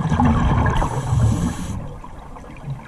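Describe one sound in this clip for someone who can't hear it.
A scuba diver breathes out, and bubbles rumble and gurgle nearby underwater.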